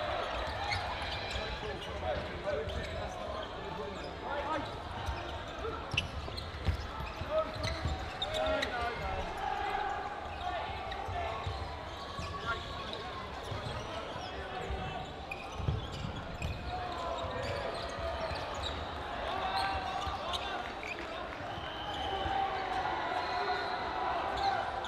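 Balls thud and bounce on a hard floor.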